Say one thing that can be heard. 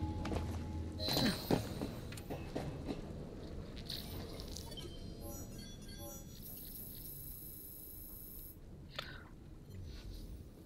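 Footsteps tread on a hard floor.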